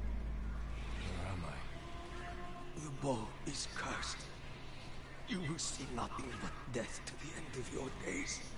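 A man speaks in a deep, menacing voice.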